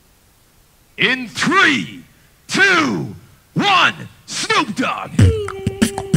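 A man shouts with excitement through a microphone.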